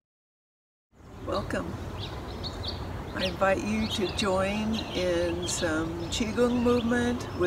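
An elderly woman speaks calmly and close by.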